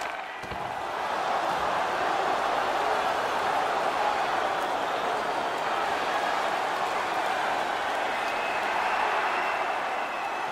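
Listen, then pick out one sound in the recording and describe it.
A large crowd roars and cheers in an echoing arena.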